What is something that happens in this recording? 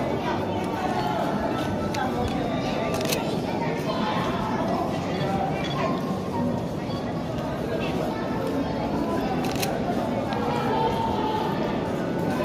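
Men and women chat nearby, their voices echoing in a tunnel.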